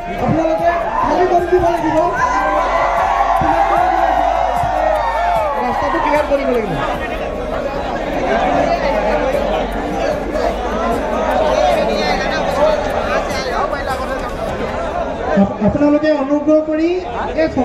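A crowd of young men cheers and shouts.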